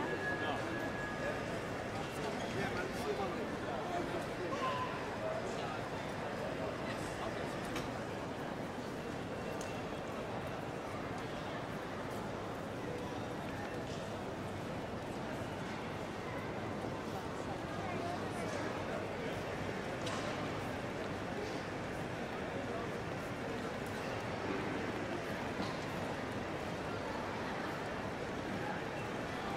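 A distant crowd murmurs and echoes in a large hall.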